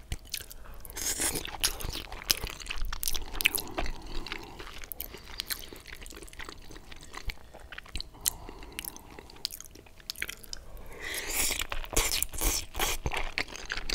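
A man slurps spaghetti close to a microphone.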